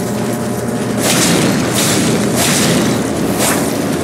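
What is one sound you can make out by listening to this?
A sword swishes through the air in quick swings.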